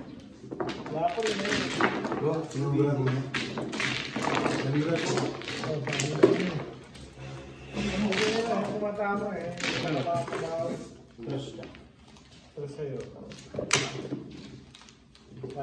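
Tiles click and clack as they are set down.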